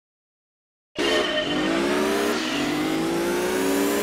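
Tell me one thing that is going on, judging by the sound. Racing car engines roar and rise in pitch as they accelerate.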